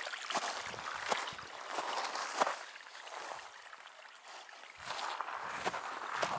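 Dry grass rustles against legs.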